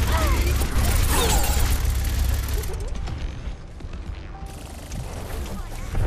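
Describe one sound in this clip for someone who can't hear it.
Energy blasts whoosh and burst.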